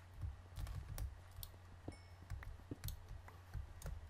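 Stone blocks crack and break under a pickaxe with quick, sharp knocks.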